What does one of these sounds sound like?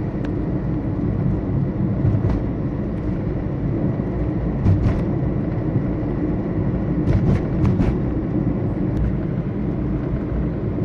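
A car engine hums low and steady as the car drives along a road.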